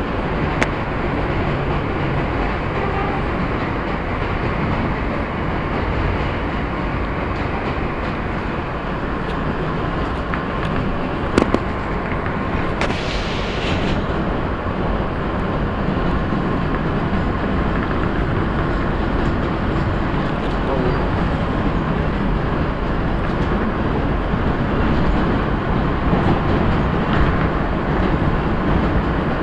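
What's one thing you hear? A subway train rumbles and rattles steadily along the tracks.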